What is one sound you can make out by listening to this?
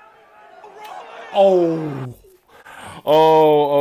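A young man talks and exclaims with animation close by.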